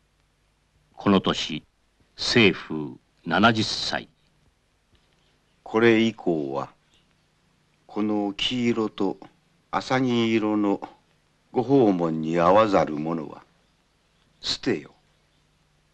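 An elderly man speaks calmly and slowly.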